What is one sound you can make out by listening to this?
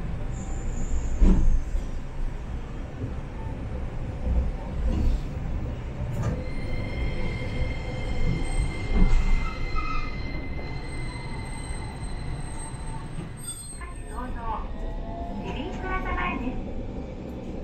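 A tram rumbles along with a low, steady drone.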